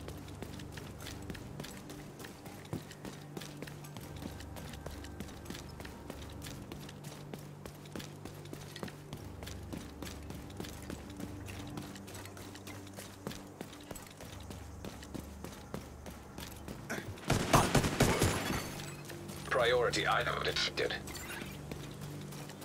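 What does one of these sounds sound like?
Footsteps patter quickly on the ground as a game character runs.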